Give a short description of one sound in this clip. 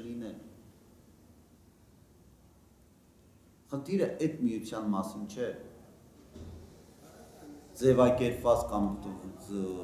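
A middle-aged man speaks calmly and thoughtfully, close by, with pauses.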